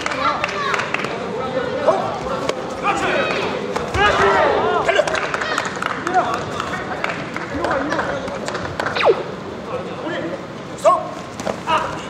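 A crowd in a large echoing hall cheers and shouts.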